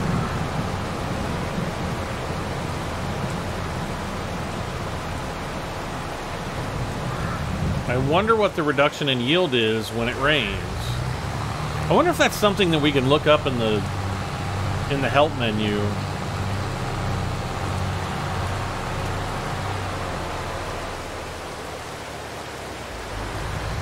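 A tractor engine rumbles steadily as it tows a trailer.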